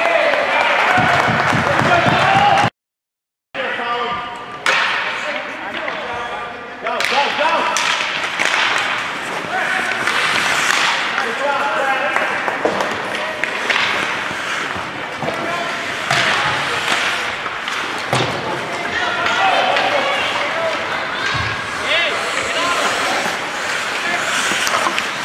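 Young players shout across an echoing rink.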